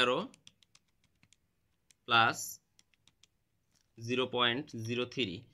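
Calculator buttons click softly as they are pressed.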